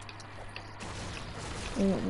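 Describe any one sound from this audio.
A pickaxe strikes a wooden chest with a sharp knock.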